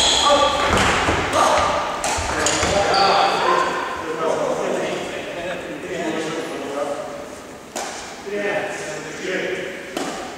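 Adult men talk casually in an echoing hall.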